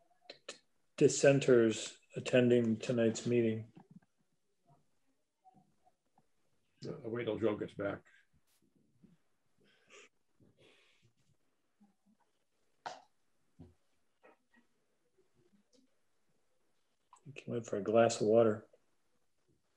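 Middle-aged and older men speak calmly over an online call, taking turns.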